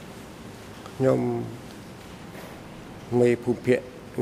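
A man speaks through a microphone in short phrases.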